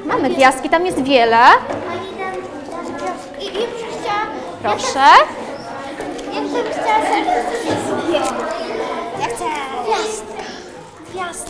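Children chatter and call out in an echoing room.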